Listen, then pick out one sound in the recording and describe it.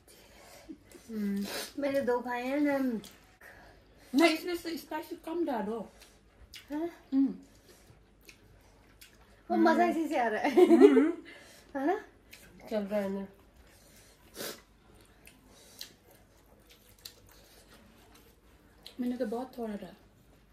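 Young women talk and laugh close by, in bursts.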